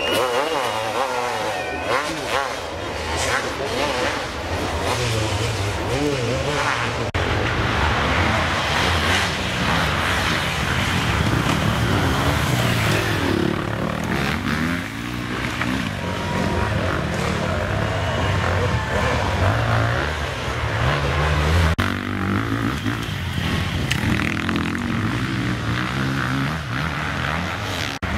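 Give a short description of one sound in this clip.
Dirt bike engines rev and roar loudly nearby.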